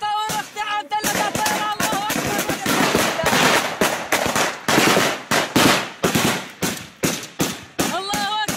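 Rifle shots crack outdoors.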